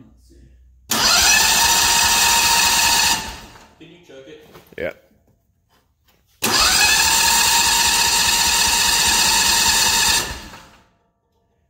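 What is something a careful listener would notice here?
An engine's starter motor cranks with a loud steady whir.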